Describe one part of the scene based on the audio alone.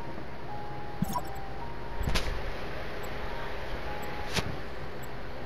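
Short electronic beeps and clicks sound from a control panel as buttons are pressed.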